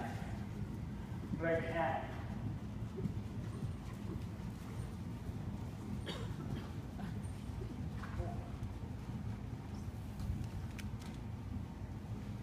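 A horse canters with muffled hoofbeats on soft arena footing.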